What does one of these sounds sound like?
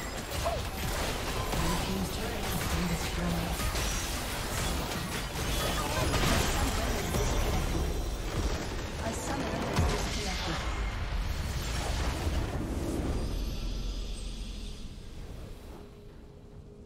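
Video game spell effects crackle, whoosh and clash in a busy battle.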